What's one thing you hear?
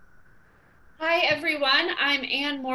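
A woman speaks cheerfully over an online call.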